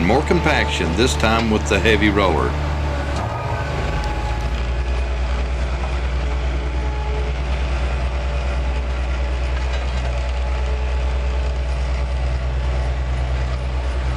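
The diesel engine of a tandem road roller rumbles.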